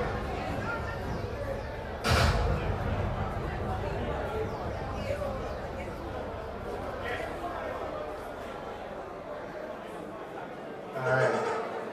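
A crowd murmurs and cheers in the background.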